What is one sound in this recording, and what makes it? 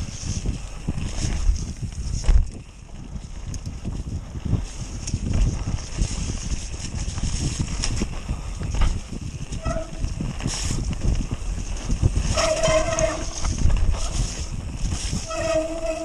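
Bicycle tyres rumble and rattle over a bumpy dirt trail.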